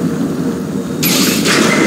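A gun fires with a loud hissing blast.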